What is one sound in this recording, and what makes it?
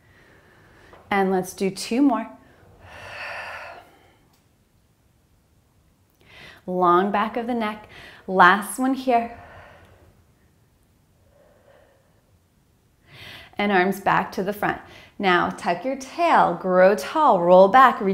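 A young woman speaks calmly and clearly close to a microphone.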